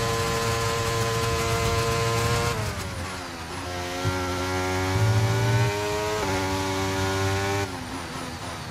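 A racing car engine screams at high revs, dropping in pitch as the driver shifts down and rising again as the driver speeds up.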